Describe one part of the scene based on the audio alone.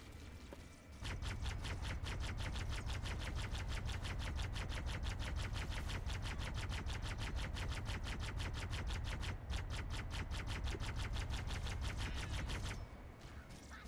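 Guns fire rapid bursts of bolts.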